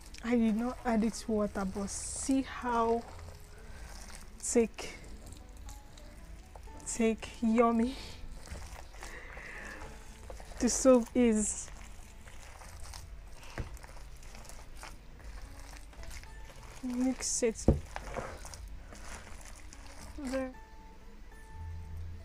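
Hands squish and knead a wet, thick mixture in a plastic bowl.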